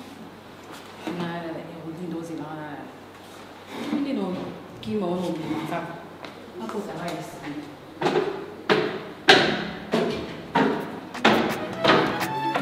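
A young woman speaks calmly to herself.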